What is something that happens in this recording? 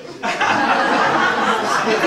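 A man laughs heartily on stage.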